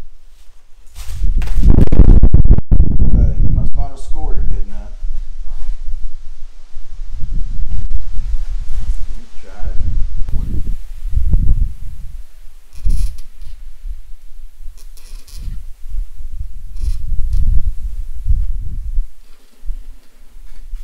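A large plastic sheet rumbles and flexes as it is handled.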